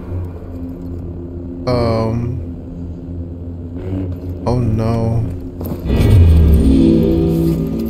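A lightsaber hums and whooshes as it swings.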